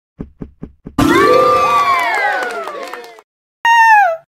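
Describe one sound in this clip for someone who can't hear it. A short cheerful electronic jingle plays for a finished level.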